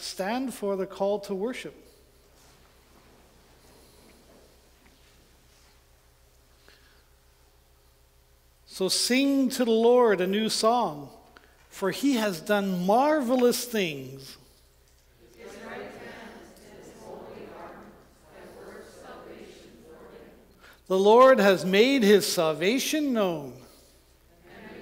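A man reads aloud calmly through a microphone in an echoing room.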